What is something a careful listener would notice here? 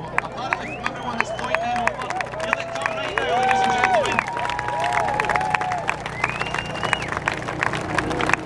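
A crowd cheers and whistles nearby.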